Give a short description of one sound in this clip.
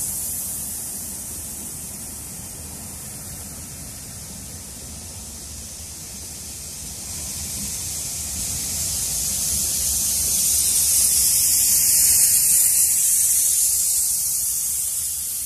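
Steam hisses from beneath a passing train.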